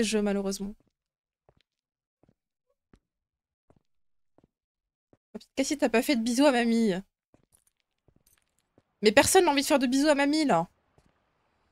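A young woman speaks with animation into a close microphone, in short bursts.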